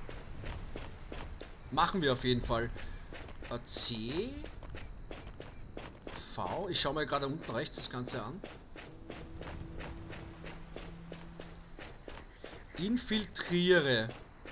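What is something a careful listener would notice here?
Footsteps crunch steadily on dry, sandy ground.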